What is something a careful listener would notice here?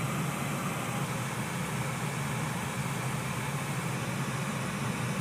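Tank engines idle with a deep, steady rumble.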